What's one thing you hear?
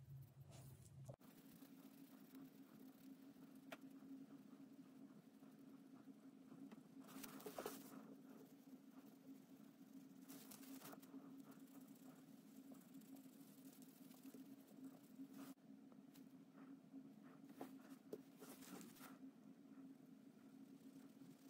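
Rubber gloves rustle as hands turn a watch.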